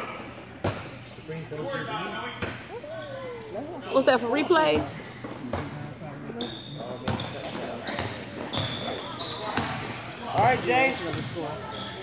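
Sneakers squeak on the gym floor.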